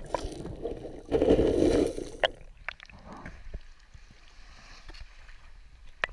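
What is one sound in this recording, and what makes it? Small waves wash onto a pebble shore.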